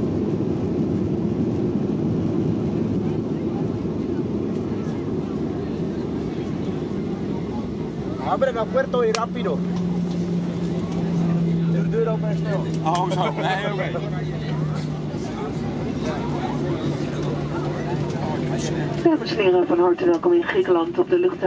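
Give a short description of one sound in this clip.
A jet engine roars steadily as an airliner rolls along a runway.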